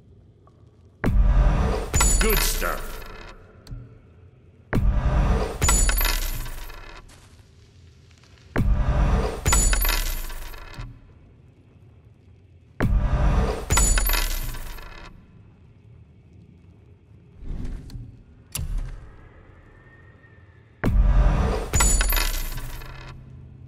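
A heavy thud with a bright metallic chime sounds each time an item is sold, then rings out.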